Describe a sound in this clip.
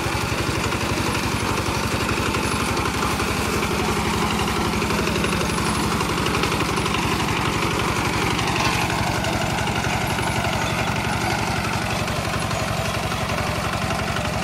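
A flail mower whirs as it cuts through grass.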